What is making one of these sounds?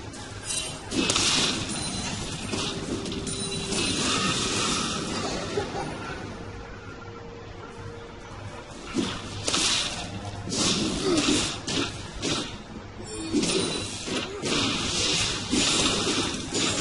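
Weapons strike with sharp hits.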